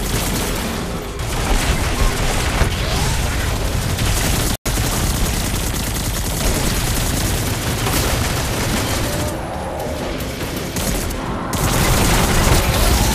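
Gunfire and energy blasts crack and boom loudly again and again.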